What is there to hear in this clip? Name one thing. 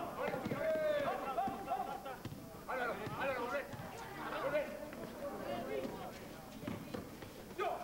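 Young men shout and call out to each other nearby.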